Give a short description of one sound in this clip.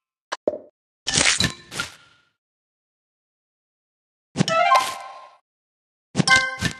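Soft chimes and clicks sound as candies are matched.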